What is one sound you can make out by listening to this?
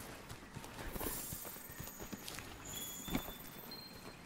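Footsteps run across soft ground.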